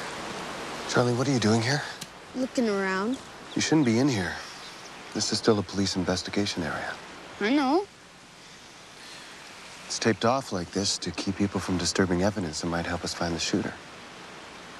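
A man speaks quietly and closely to a child.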